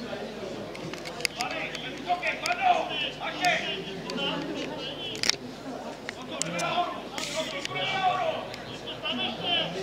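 A crowd of spectators, men and women, talk and chatter nearby outdoors.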